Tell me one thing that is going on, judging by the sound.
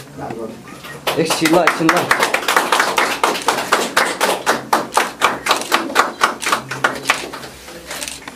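A small group claps their hands.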